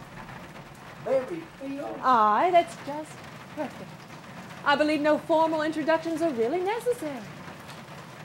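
A middle-aged woman speaks firmly nearby.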